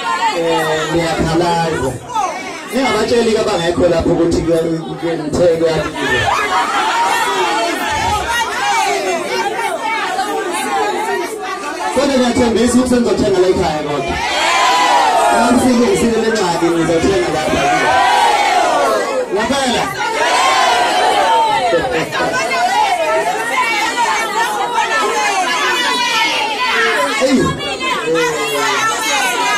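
A young man sings loudly into a microphone, heard through a loudspeaker.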